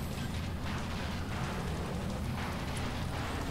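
Metal scrapes and crunches as cars collide.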